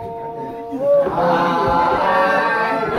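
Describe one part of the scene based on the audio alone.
A crowd of men cheers and shouts in unison.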